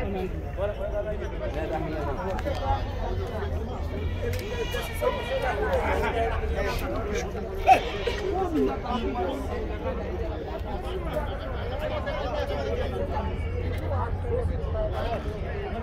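Sheep and goats bleat in a crowded pen.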